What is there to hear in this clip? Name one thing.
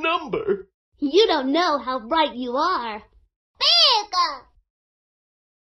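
A girl speaks brightly.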